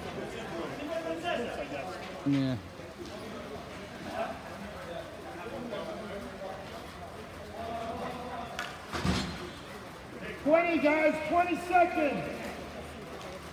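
Children shout and call out across an outdoor rink.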